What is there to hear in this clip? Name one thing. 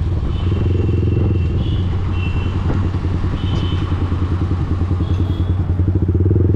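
A motorcycle engine rumbles and throbs close by.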